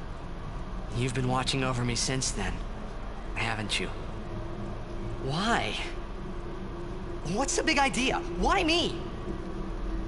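A young man speaks questioningly.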